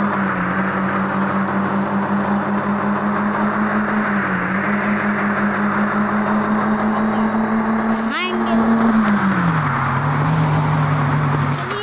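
A car engine hums steadily at high speed, its pitch dropping near the end.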